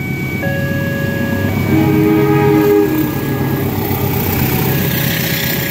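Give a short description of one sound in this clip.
A railway crossing bell rings steadily.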